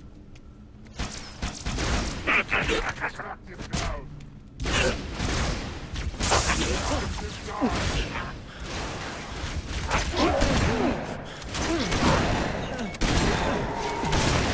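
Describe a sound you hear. A plasma rifle fires in rapid bursts.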